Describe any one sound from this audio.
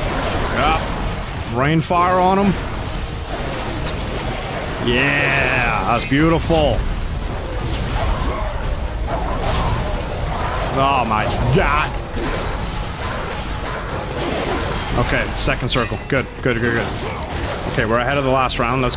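Blows and clashing sounds from a fight ring out.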